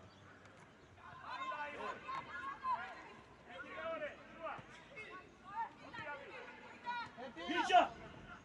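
Young players and spectators shout and call out across an open outdoor field.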